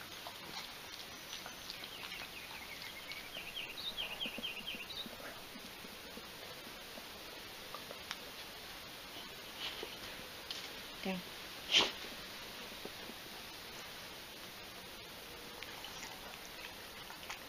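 A woman speaks softly to a dog close by.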